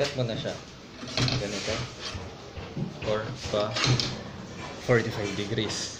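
A hand saw rasps back and forth through metal.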